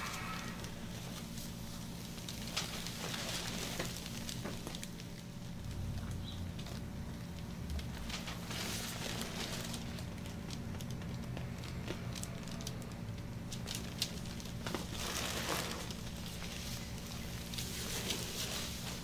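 Gloved hands rub and knead oiled skin with soft slick squelching sounds.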